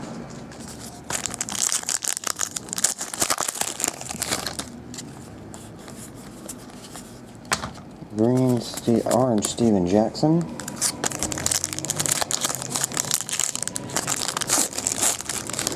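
A foil wrapper of a card pack crinkles and tears open.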